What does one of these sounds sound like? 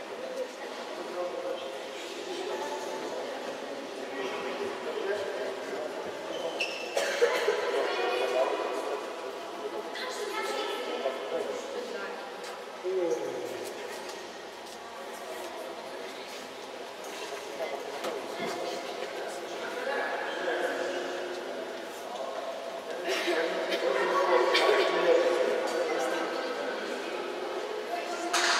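A crowd of children and adults chatter in a large echoing hall.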